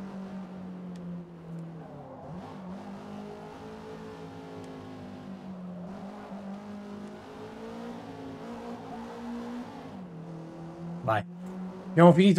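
A race car engine hums and revs up and down steadily.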